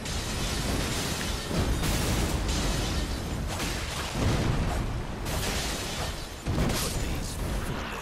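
A crackling magical blast bursts and roars.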